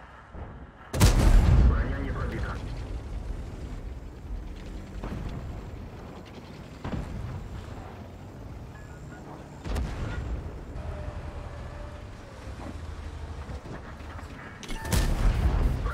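A tank cannon fires with a loud, sudden boom.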